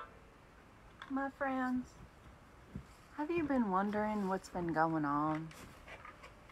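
A young woman speaks close by in a questioning, playful tone.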